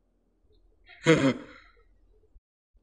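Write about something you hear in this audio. A young man laughs out loud.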